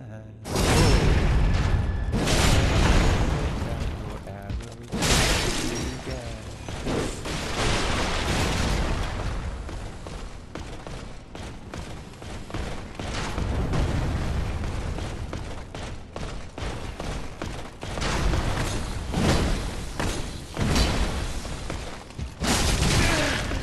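Metal weapons clash and strike with heavy blows.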